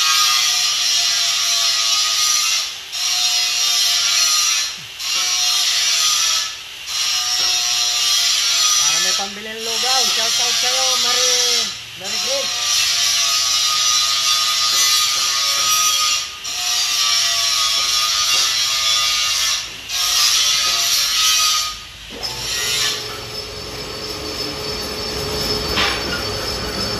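A lathe runs with a loud, steady whirring hiss.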